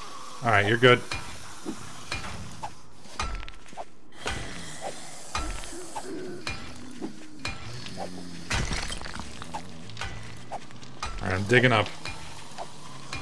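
A pickaxe strikes rock with sharp knocks.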